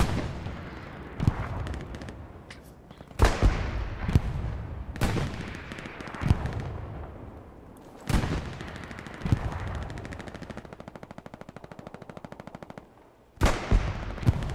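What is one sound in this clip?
Gunshots crack and echo loudly, again and again.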